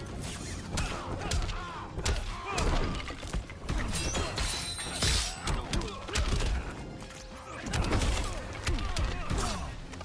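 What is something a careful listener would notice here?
Punches and kicks land with heavy thuds and smacks.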